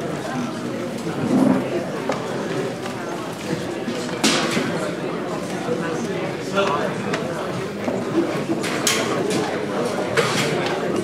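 A crowd of men and women chat at once in a room with echoes.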